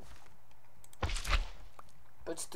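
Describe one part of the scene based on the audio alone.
A block breaks with a crunching sound.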